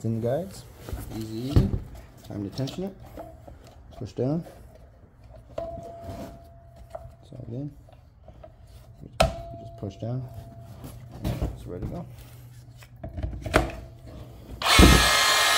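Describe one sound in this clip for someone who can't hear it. Plastic parts of a power tool clack and knock as they are handled.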